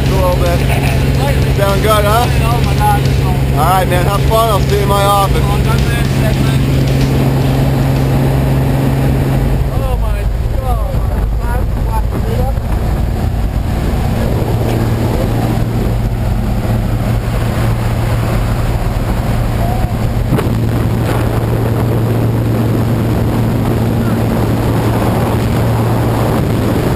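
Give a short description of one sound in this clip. A small plane's engine drones steadily throughout.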